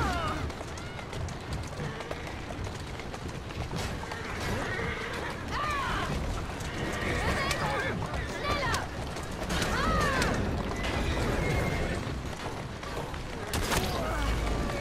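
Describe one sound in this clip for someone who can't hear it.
Carriage wheels rattle steadily over cobblestones.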